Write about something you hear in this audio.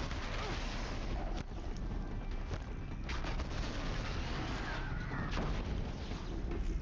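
Loud thuds and crashes of a fight ring out over a steady roar.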